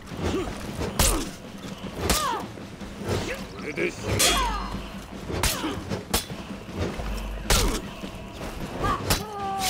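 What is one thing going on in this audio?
Metal blades clash and ring in sharp, repeated strikes.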